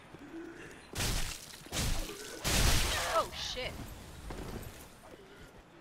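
A sword strikes and slashes with heavy thuds.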